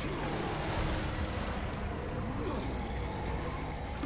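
A helicopter's rotor thuds as it flies close by.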